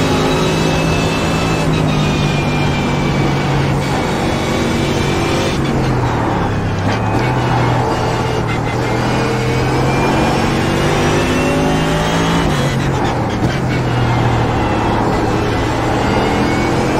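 A racing car engine roars loudly at high revs.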